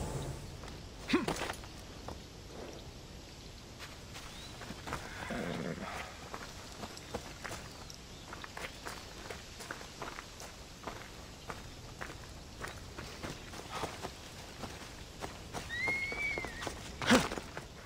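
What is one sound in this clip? Footsteps crunch on dirt and stone.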